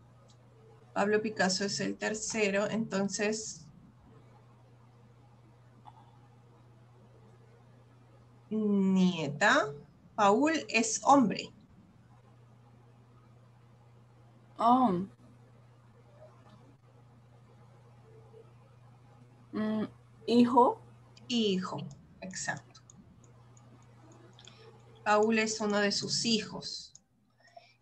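A woman speaks calmly through a microphone, in short bursts with pauses.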